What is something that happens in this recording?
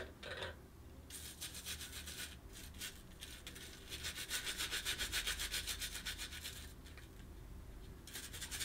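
A stiff-bristled brush scrubs a metal safety razor.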